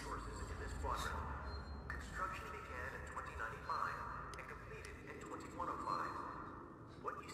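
Short electronic beeps sound as keypad buttons are pressed.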